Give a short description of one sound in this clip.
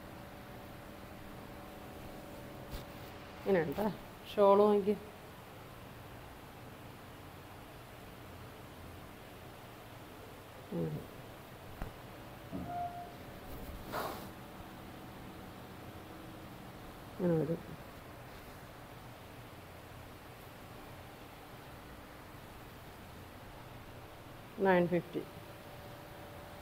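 Cloth rustles as it is unfolded and handled.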